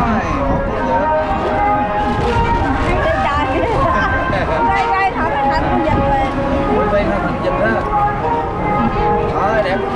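Rubber balloons squeak as they are twisted.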